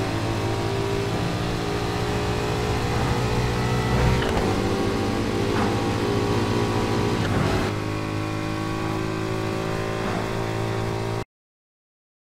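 Sports car engines roar steadily at high speed.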